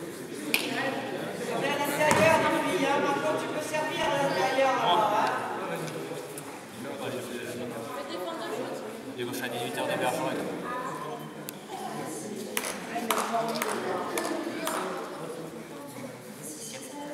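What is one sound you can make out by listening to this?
Sneakers squeak and shuffle on a hard floor.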